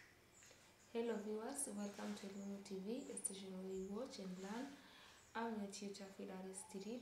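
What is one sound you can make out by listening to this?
A young woman speaks calmly into a microphone nearby.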